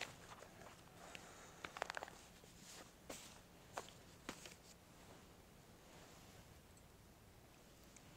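Books and objects knock and rustle on a table.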